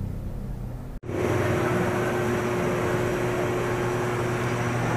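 A fuel pump hums steadily while fuel flows into a car.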